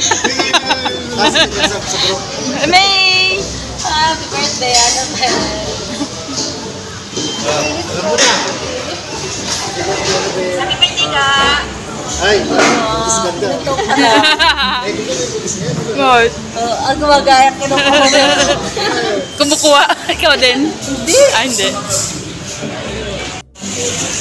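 A crowd of diners chatters in the background.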